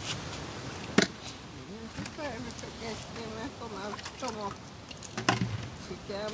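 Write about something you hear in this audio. A plastic cup knocks against the rim of a bucket.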